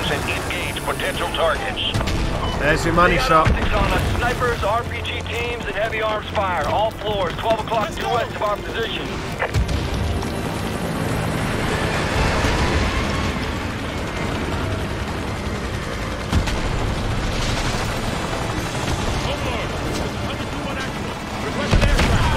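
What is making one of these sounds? Gunfire and explosions rumble in the distance.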